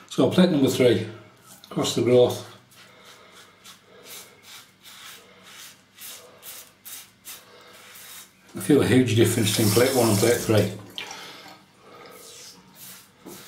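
A razor scrapes through stubble in short strokes.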